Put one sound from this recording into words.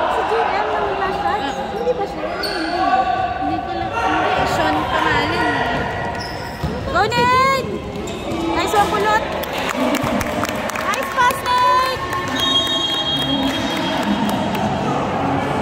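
Young players shout and call out across the echoing gym.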